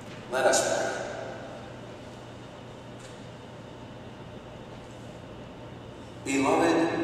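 A man sings a chant in a large echoing hall.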